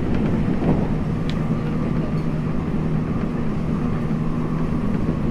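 An electric commuter train hums while standing at a platform.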